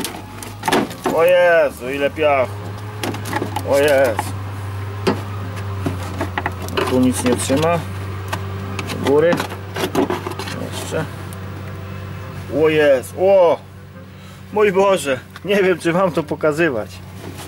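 A plastic panel creaks and rattles as a hand pulls at it.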